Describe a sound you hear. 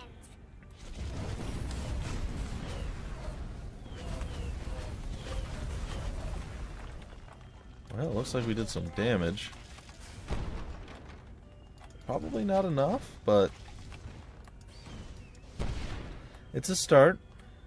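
Magic blasts whoosh and zap in a fight.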